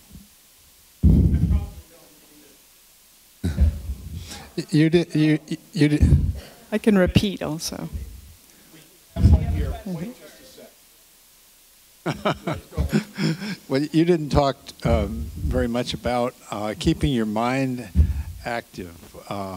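A woman speaks calmly through a headset microphone, heard over a loudspeaker.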